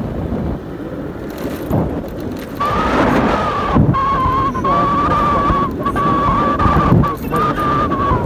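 Wind rumbles against the rider throughout.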